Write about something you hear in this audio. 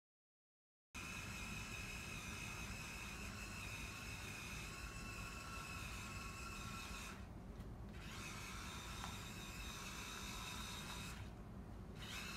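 A small robot's electric motors whir as the robot drives across a hard floor.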